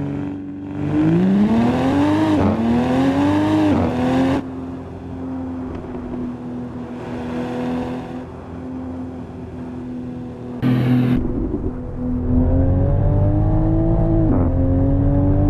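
A car engine revs up, rising in pitch and dropping back as gears shift.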